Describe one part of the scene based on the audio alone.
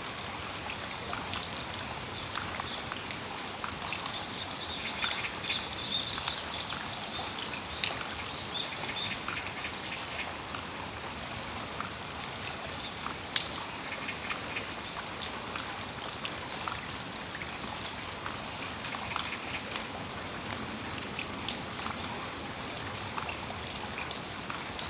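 Raindrops patter and tap on a metal awning.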